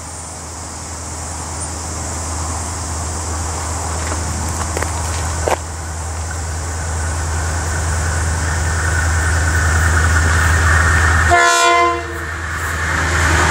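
A diesel locomotive rumbles closer, growing steadily louder.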